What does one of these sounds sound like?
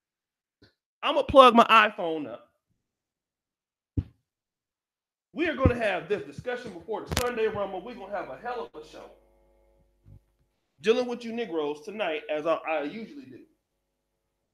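A man speaks with animation close to a microphone, in bursts with pauses.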